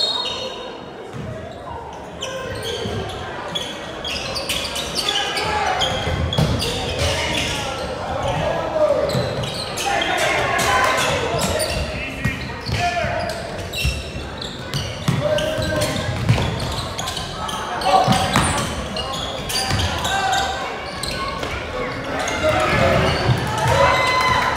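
Sneakers squeak on a hardwood basketball court in a large echoing gym.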